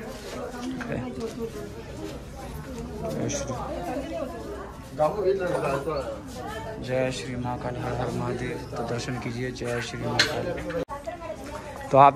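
A man talks close by, calmly.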